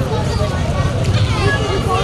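A crowd of people talk and call out outdoors.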